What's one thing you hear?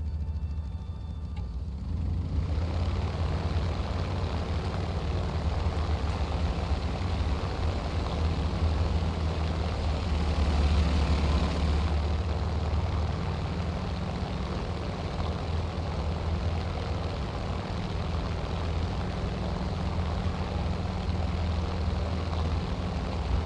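A propeller plane's engine roars steadily and grows louder as it speeds up.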